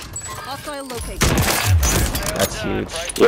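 A sniper rifle fires a loud shot.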